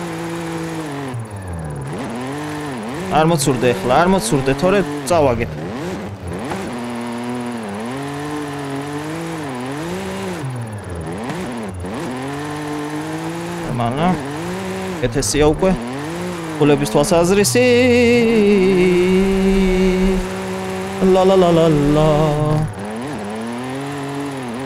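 A car engine revs hard, rising and falling as gears change.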